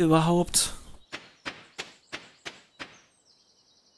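Footsteps patter quickly on a dirt path.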